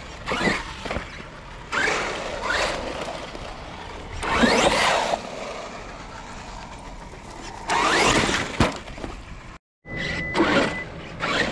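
An electric motor of a remote-control car whines, rising and falling in pitch as it speeds up.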